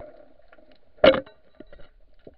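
A speargun fires underwater with a sharp snap.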